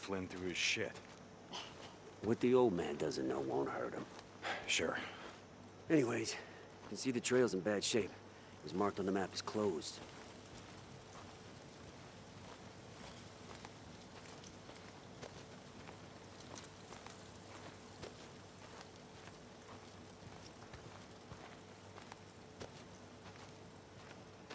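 Footsteps crunch on dry dirt and gravel.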